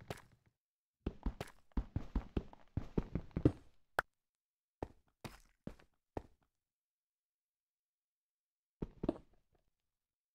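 A pickaxe chips at stone in quick knocks.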